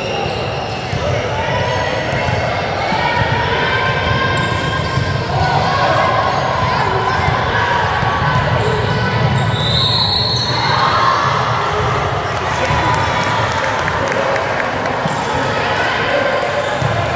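Young women call out and shout to each other across the court.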